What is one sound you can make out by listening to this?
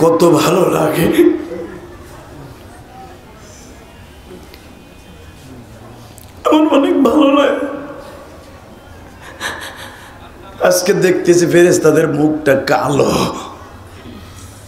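A man chants in a drawn-out, melodic voice through a microphone and loudspeakers, with pauses between phrases.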